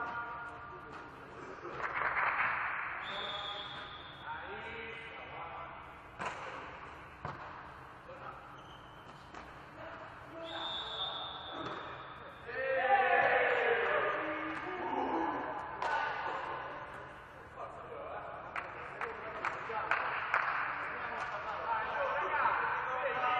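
Men shout and call out to each other across the court.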